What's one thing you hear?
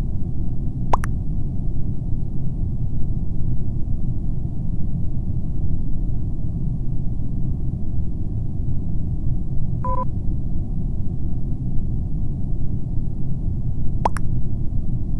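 A short electronic chime sounds as a chat message arrives.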